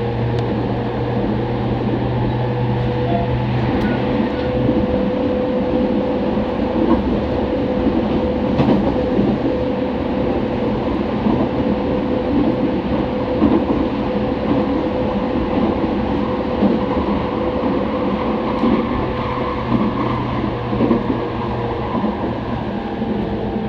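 An electric train's motor gives off a steady whine.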